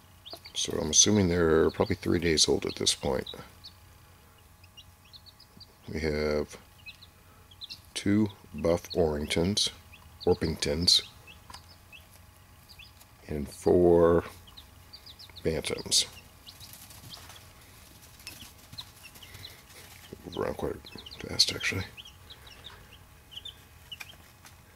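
Chicks peep softly and steadily.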